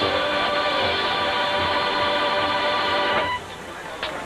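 A marching band plays brass chords in a large open stadium.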